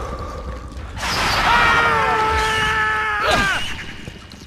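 A large creature lets out a loud, wavering screech.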